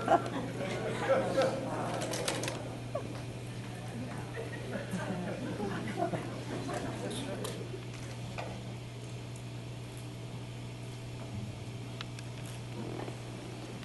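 A man speaks into a microphone over a loudspeaker in a hall.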